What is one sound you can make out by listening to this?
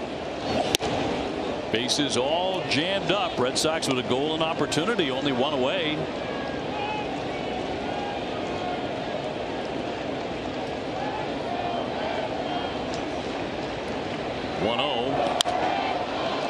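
A baseball smacks sharply into a catcher's mitt.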